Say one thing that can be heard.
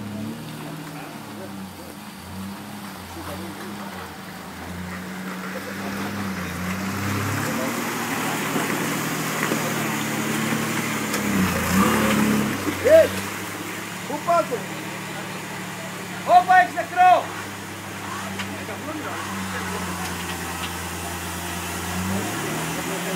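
An off-road truck's engine idles and revs unevenly close by.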